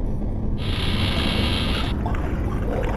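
A glowing energy blade hums and crackles.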